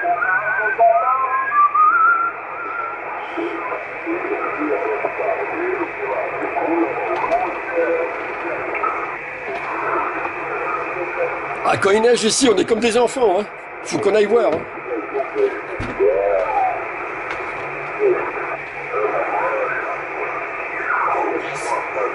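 A man talks over a crackly radio loudspeaker.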